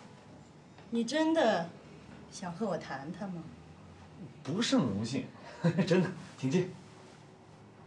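A man speaks calmly and politely.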